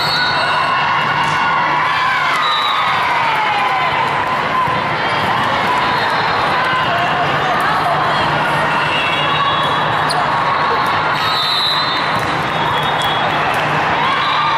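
A volleyball thumps off players' arms.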